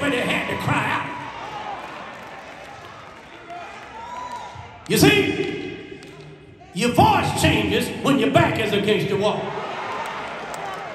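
A man preaches loudly and passionately through a microphone in a large echoing hall.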